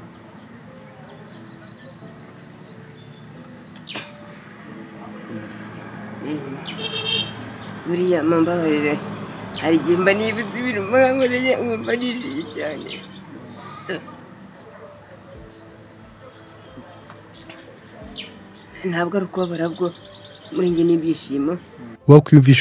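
A middle-aged man sobs and weeps.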